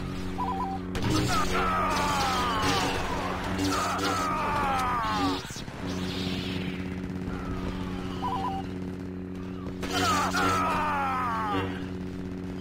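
A lightsaber swishes through the air in quick swings.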